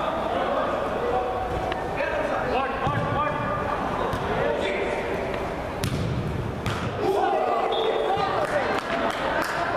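Young men shout to each other across a large echoing indoor hall.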